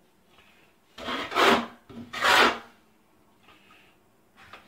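A trowel scrapes wet mortar across a board.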